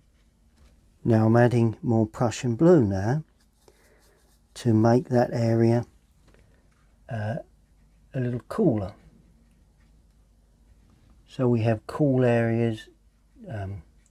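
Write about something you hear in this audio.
An older man talks calmly and closely.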